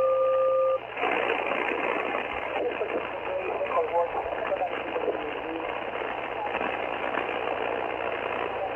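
Radio static hisses and crackles from a small loudspeaker.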